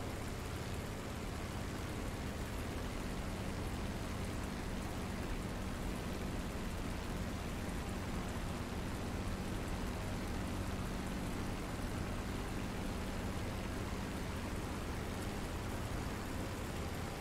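A propeller plane's engine drones steadily and loudly.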